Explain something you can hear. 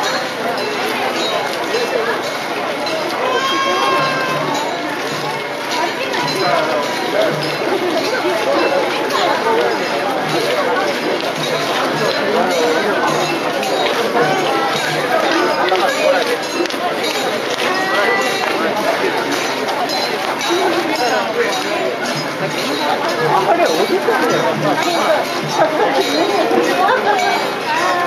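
A crowd of men and women chatter and call out close by, outdoors.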